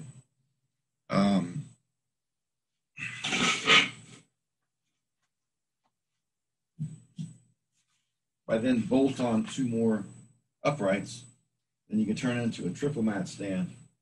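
A man talks calmly close to a microphone.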